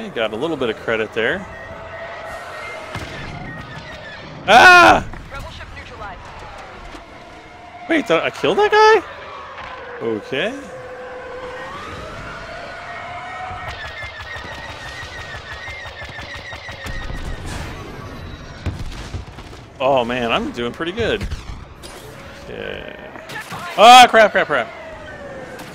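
Laser cannons fire in rapid bursts of shots.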